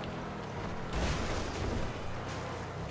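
A car crashes and crates break apart.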